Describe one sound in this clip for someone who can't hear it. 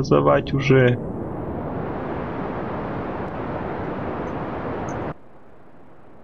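A rocket engine roars steadily, then cuts off abruptly.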